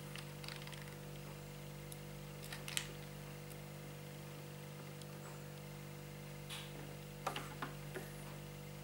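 A small screw clicks and scrapes as it is turned by hand.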